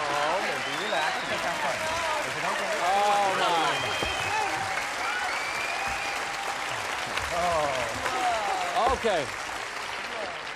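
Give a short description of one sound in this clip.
A man exclaims excitedly, close by.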